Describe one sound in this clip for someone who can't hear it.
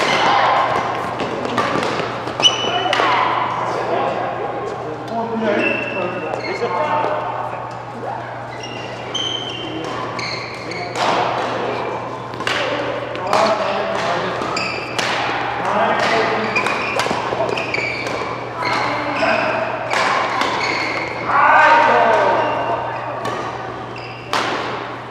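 Sports shoes squeak sharply on the court floor.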